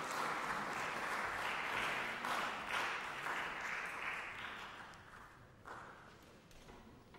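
An audience applauds in a large hall and the clapping fades away.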